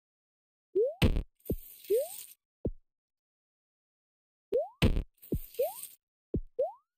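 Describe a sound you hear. A bright crackling burst sounds as a game item is collected.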